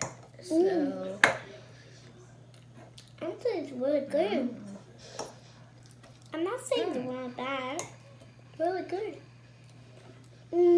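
Young girls talk with animation close by.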